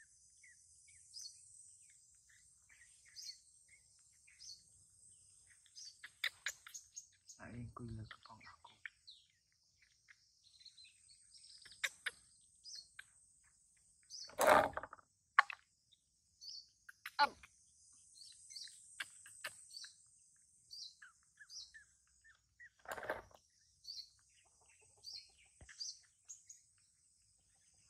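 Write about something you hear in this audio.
A baby monkey sucks noisily on a milk bottle.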